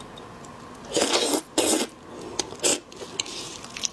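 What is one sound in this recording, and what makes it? Loud, wet slurping and chewing close to a microphone.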